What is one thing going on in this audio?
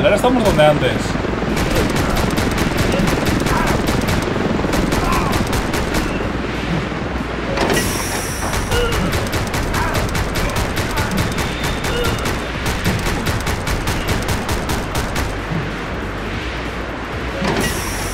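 Video game gunshots fire in rapid bursts.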